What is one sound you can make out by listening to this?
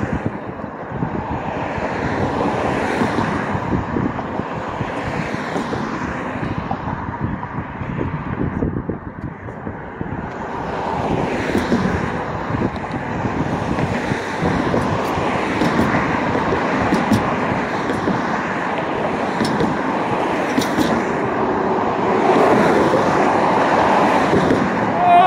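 Cars drive past close by on a street, swelling and fading one after another.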